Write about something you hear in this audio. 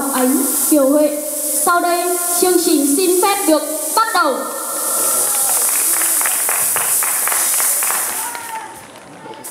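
Music with a high singing voice plays loudly over loudspeakers in a large hall, then stops.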